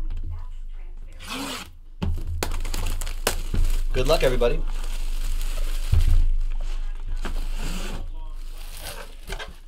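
Plastic wrap crinkles and rustles as it is torn off a box.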